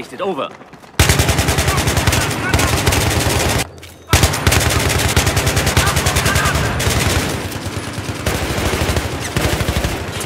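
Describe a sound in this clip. An automatic rifle fires in a video game.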